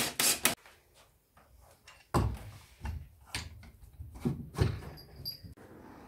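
Plastic parts clack and knock together.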